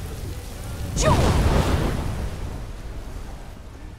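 A dragon breathes out a loud, roaring blast of frost.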